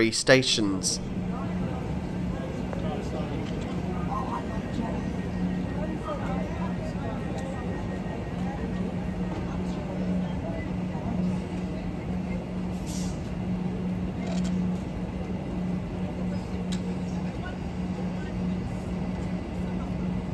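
A stopped train hums steadily nearby.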